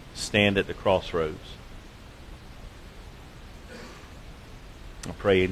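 A man speaks slowly through a microphone in a large echoing hall, with long pauses.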